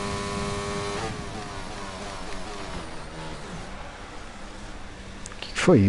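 A racing car engine drops in pitch as it slows down.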